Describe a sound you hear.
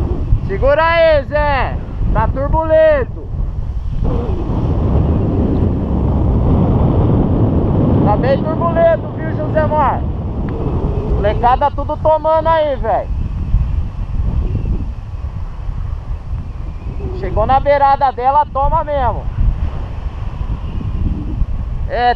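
Wind rushes and buffets against a microphone in flight.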